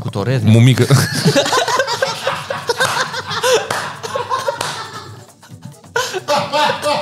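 Several men laugh heartily into close microphones.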